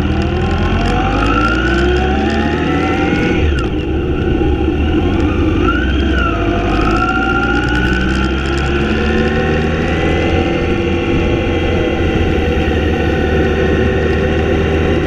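A motorcycle engine hums close by, its pitch rising and falling as it speeds along.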